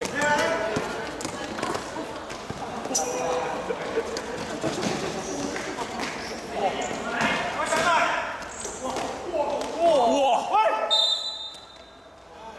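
A basketball bounces on a hard court in a large echoing hall.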